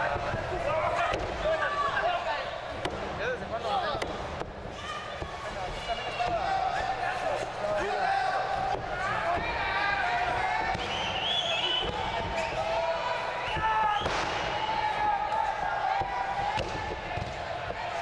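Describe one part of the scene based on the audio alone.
Bodies thud heavily onto a wrestling ring mat.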